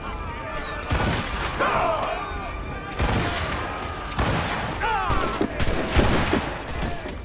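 Gunfire cracks sharply.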